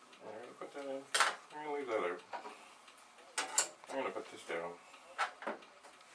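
Computer equipment clicks and knocks as it is handled.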